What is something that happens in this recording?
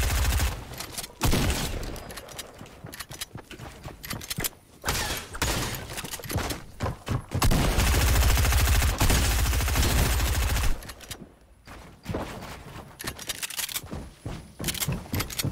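Wooden and glassy building pieces clack rapidly into place.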